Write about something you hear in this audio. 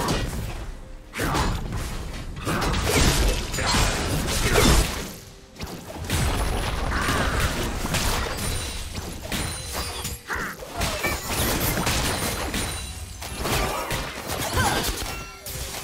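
Game spell effects and blows crackle and clash in a fast fight.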